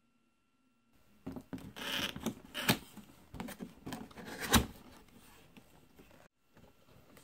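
Cardboard box flaps are pulled open with scraping and rustling.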